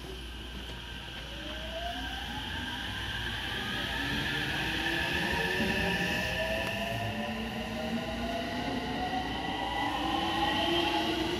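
An electric train pulls away with a rising motor whine.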